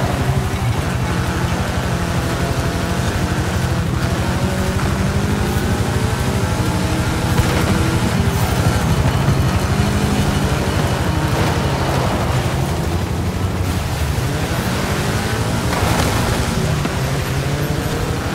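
An off-road buggy engine roars and revs loudly.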